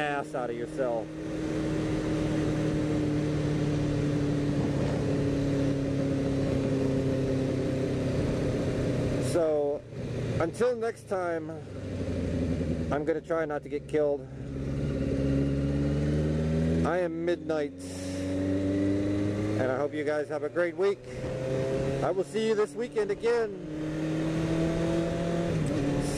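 Wind rushes past a moving motorcycle.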